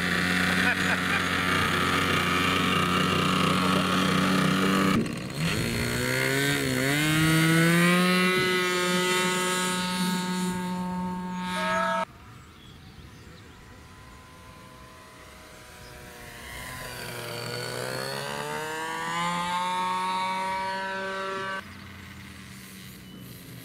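A small model plane engine buzzes loudly, revs higher as the plane takes off, and then drones from farther away.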